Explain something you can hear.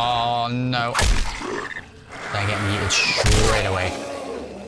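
A blade strikes flesh with heavy thuds.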